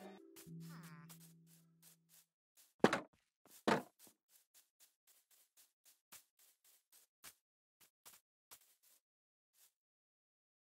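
Video game footsteps patter across grass.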